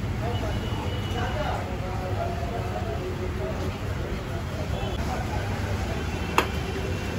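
Steam hisses steadily from a large pot.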